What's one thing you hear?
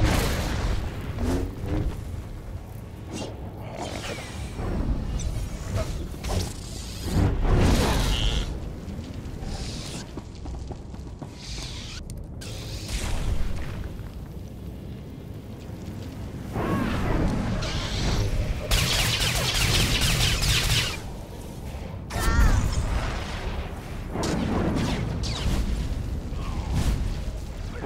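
Lightsabers hum and clash in a fight.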